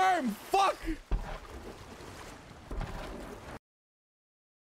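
Ocean waves surge and roll.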